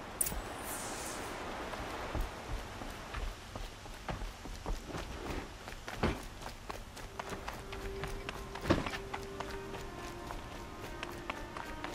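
Footsteps run across a stone floor.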